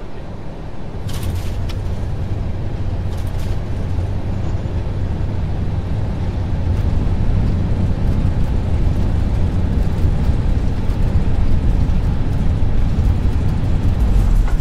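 Tyres rumble loudly on a runway after touchdown.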